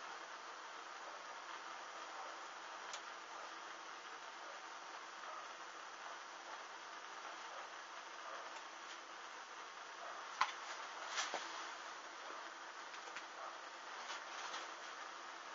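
Small flames crackle and hiss softly as fabric burns.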